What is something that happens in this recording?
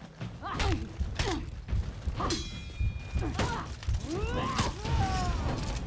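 Metal swords clash and ring sharply.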